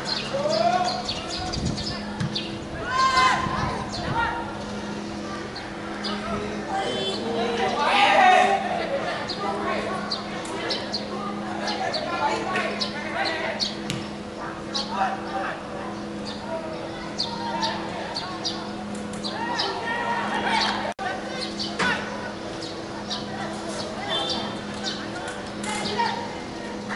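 Young men shout and call to each other across an open outdoor pitch.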